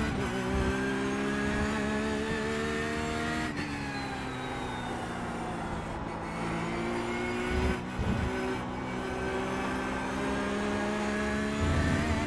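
A race car engine roars close by, its pitch rising and then dropping sharply with each gear change.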